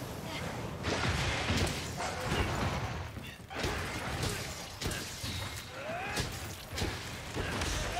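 Heavy blows and crashes of a fight ring out.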